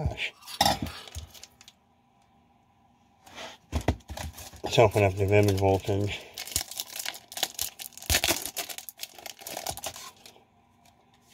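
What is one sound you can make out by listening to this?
A foil wrapper crinkles and rustles in hands.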